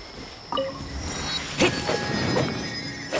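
A bright magical chime swells and shimmers.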